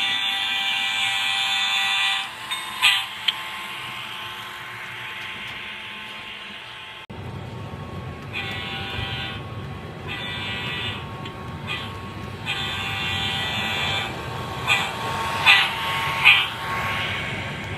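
A model train motor whines as the locomotive passes close by.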